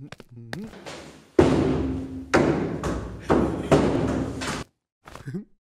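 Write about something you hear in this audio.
A person knocks on a wooden door.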